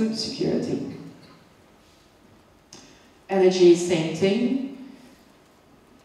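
A woman speaks into a microphone in a large echoing hall, in short phrases.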